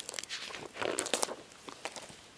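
Pages of a book rustle.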